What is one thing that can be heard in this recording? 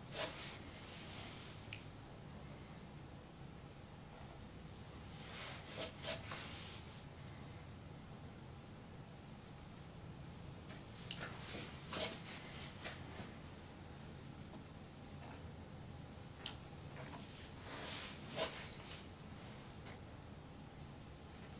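A palette knife scrapes softly across a canvas.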